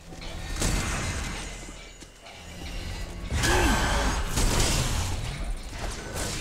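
Heavy armored footsteps thud on the ground.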